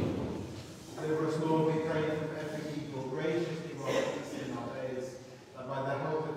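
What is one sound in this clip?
Several people sing together in a large echoing hall.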